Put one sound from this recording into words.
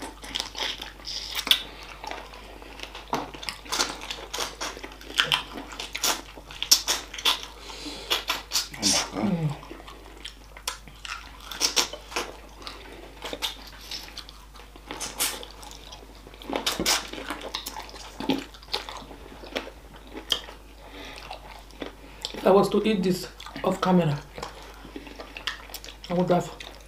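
Wet, crunchy chewing and slurping sound up close.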